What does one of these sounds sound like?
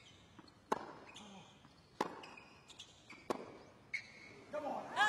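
Tennis balls are struck sharply by rackets in a rally.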